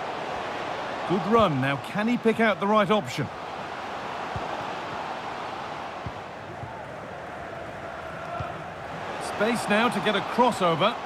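A large stadium crowd murmurs and cheers steadily in the background.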